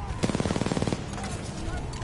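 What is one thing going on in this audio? Rapid gunfire rattles in a short burst.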